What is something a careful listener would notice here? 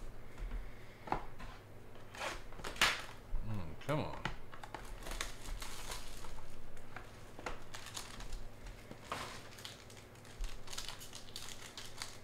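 Plastic packaging crinkles and rustles as cards are unwrapped.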